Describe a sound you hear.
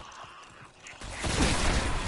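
A blast of energy explodes with a loud whoosh.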